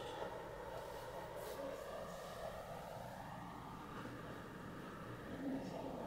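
Hands rustle softly through long hair.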